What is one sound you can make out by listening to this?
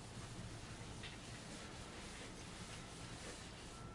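A board eraser wipes across a blackboard.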